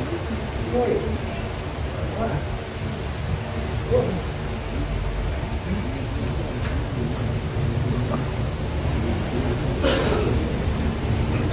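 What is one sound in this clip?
A crowd of men and women murmurs and chatters nearby.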